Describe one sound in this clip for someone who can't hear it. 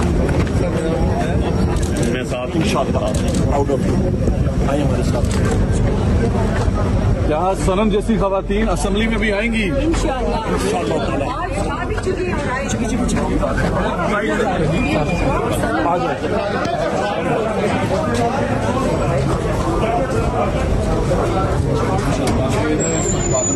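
A crowd of men talks and shouts over one another close by, outdoors.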